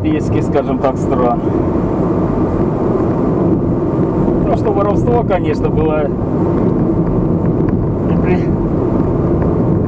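Tyres roll steadily over an asphalt road.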